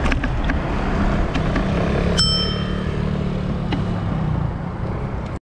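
A scooter engine hums as it passes close by.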